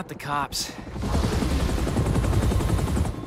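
A helicopter's rotor thumps loudly close by.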